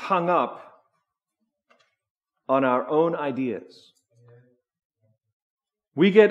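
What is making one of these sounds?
A man speaks calmly through a microphone in a large room, with pauses between phrases.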